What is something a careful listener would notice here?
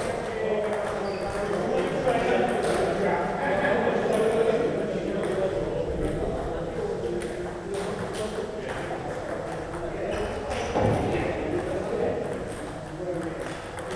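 A man talks.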